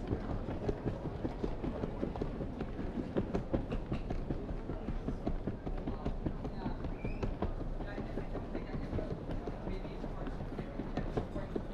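A wheeled suitcase rolls over a tiled floor.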